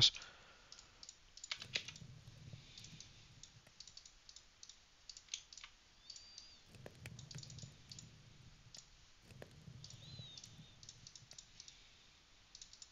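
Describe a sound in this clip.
Items click softly as they are moved around.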